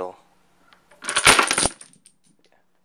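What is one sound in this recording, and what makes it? Wooden blocks clatter as a tall stack topples onto a table and floor.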